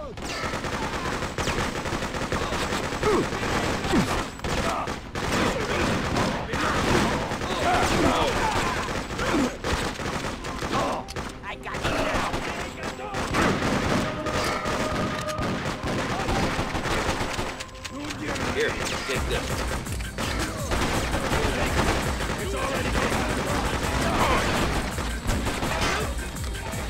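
Gunshots crack in quick bursts, echoing off hard walls.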